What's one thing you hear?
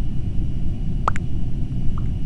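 A short electronic blip sounds as a chat message arrives.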